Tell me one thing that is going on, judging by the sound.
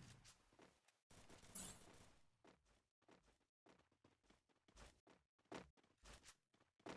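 Footsteps run quickly on hard ground.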